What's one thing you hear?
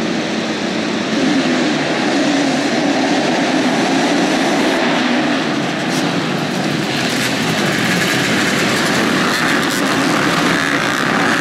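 Many motorcycle engines roar loudly together.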